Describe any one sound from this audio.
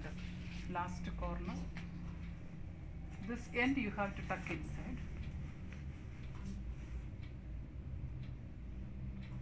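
Fabric rustles as a sheet is tucked under a mattress.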